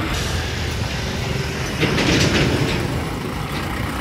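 A light diesel truck drives past.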